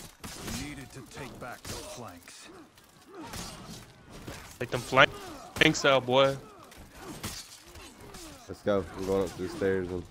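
Swords clash and clang in a battle.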